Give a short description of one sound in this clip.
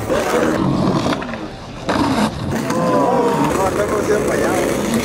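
Skateboard wheels roll and clatter on concrete.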